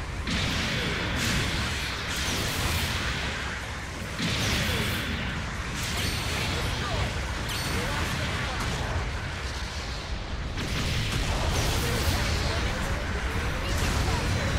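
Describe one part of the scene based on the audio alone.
A beam saber hums and slashes.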